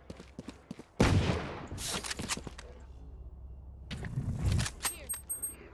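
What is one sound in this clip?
A gun is drawn with a sharp metallic clatter.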